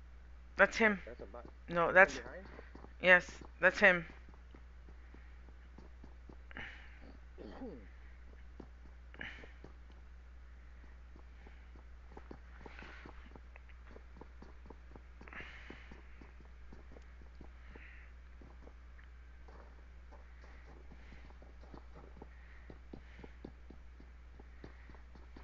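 Footsteps creak softly on a wooden floor.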